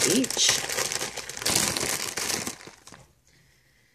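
A snack wrapper crinkles.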